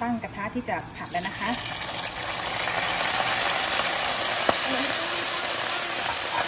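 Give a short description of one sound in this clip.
Oil and food sizzle loudly as they are poured into a hot pan.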